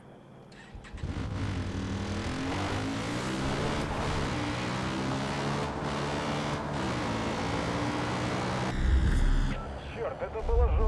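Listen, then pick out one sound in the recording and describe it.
A quad bike engine drones steadily while driving.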